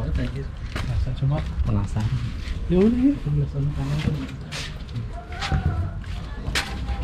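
A young man talks cheerfully close to the microphone.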